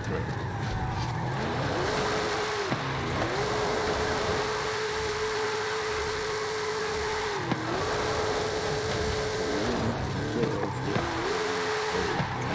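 Tyres screech as a car drifts on a road.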